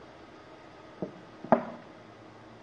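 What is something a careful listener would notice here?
A mug knocks down onto a hard surface.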